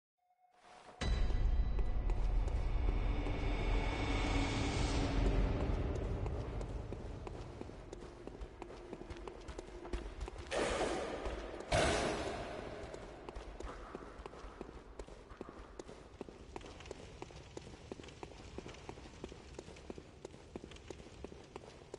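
Footsteps walk steadily over stone and gravel.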